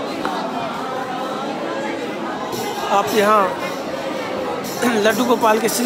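A crowd of people chants and sings loudly nearby.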